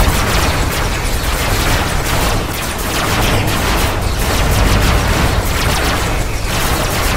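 Guns rattle rapidly.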